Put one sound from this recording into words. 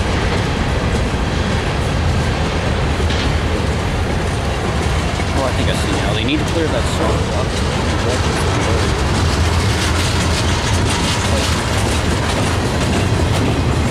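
A freight train rumbles past close by, its wheels clattering on the rails.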